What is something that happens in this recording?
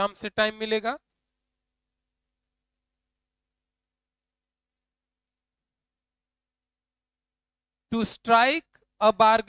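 A young man speaks clearly, as if teaching, with long pauses.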